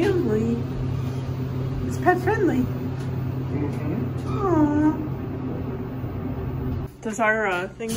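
An elevator hums steadily.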